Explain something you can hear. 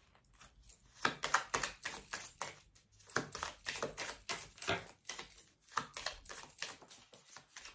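Playing cards riffle and patter as a deck is shuffled.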